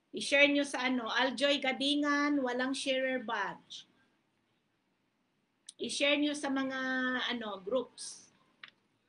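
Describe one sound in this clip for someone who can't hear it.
A young woman talks through a phone microphone.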